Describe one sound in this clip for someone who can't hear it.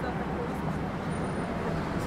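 A bus engine hums close by.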